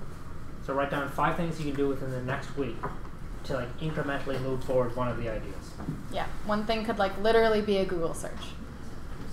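A young man speaks calmly to an audience.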